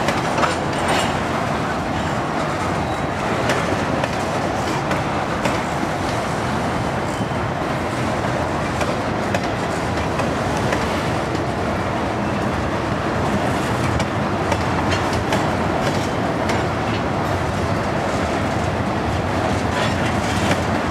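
A freight train's cars roll past with a steady rumble on the rails.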